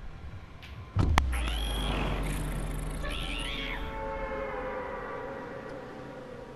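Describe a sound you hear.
Wind rushes loudly past during a free fall.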